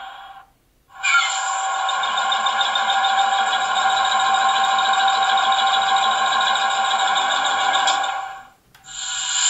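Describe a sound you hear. A model diesel locomotive's speaker plays a chugging air compressor.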